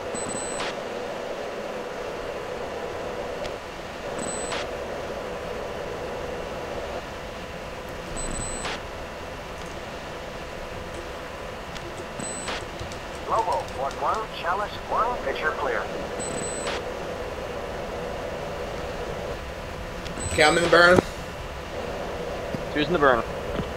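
A jet engine drones steadily.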